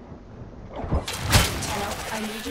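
A blade slashes and strikes with sharp impacts.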